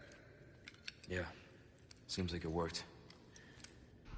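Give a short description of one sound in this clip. A lighter clicks and flares.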